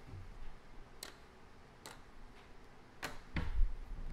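Plastic game chips click on a wooden table.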